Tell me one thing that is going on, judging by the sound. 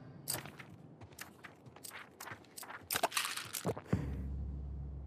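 Items rattle and clatter as a box is rummaged through.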